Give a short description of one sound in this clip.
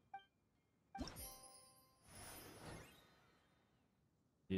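Soft chimes and swishes play as a game menu opens.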